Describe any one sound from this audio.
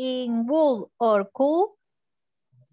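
A woman speaks over an online call.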